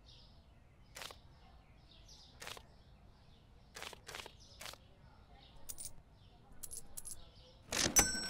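Banknotes and coins click into a cash register drawer.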